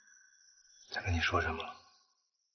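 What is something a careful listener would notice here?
A man answers in a low, weary voice nearby.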